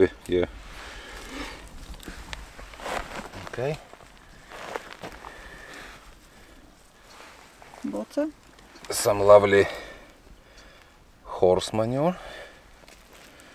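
A man speaks calmly up close.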